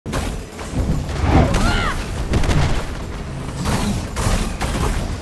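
Heavy punches and blows thud during a fight.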